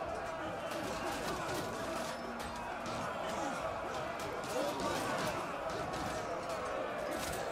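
Swords clash and clang against shields.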